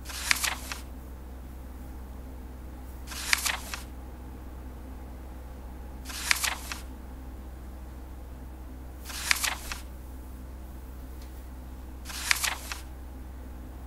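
A paper page flips over with a quick rustle, again and again at an even pace.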